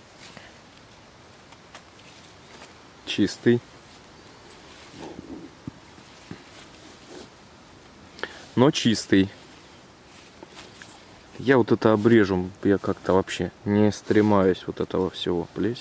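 A knife slices softly through a mushroom.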